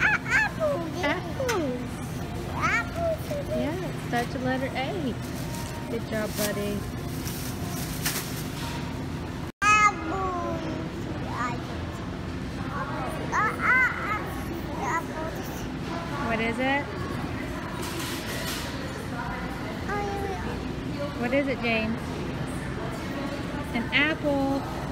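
A young toddler babbles and talks in a high voice close by.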